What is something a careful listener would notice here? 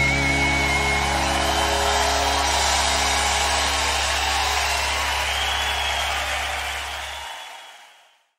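A rock band holds a final chord that rings out.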